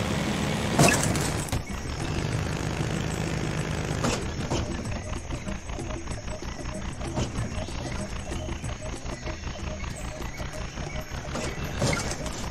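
A small electric cart motor hums steadily.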